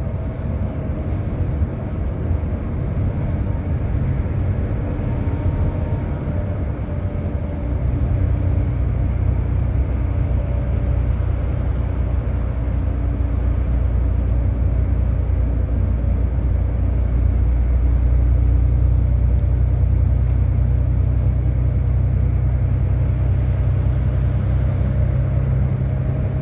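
A bus engine drones steadily from inside the cabin, growing louder partway through.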